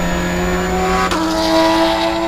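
A Spec Miata race car engine shifts up a gear, its pitch dropping before climbing again.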